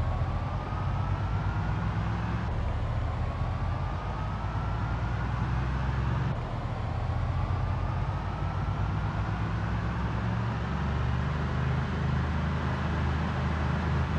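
A truck engine hums steadily as it drives along a highway.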